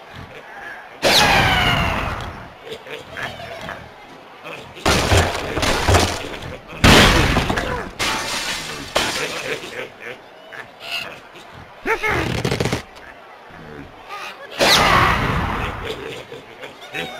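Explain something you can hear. A cartoon bird is flung from a slingshot with a whooshing cry.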